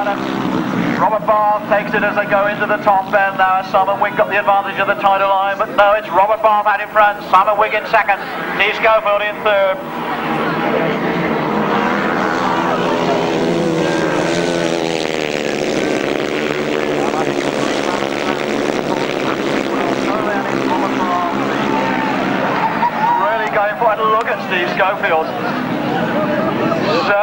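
Several motorcycle engines roar and rev loudly as the bikes race past.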